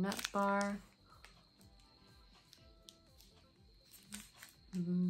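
A young woman chews crunchily.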